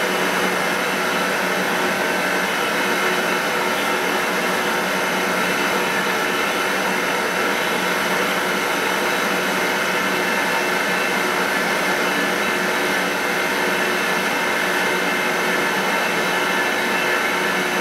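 A cutter grinds into metal with a high, harsh tone.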